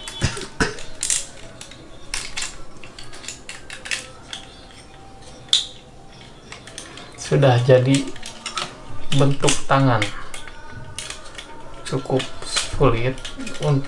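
Plastic toy parts click and snap as they are folded.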